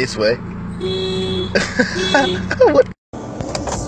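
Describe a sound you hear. A car horn honks.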